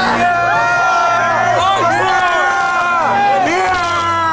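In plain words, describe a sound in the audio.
A young man screams close by.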